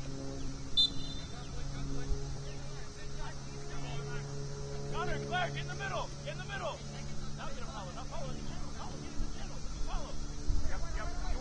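Young men call out to each other across an open outdoor field.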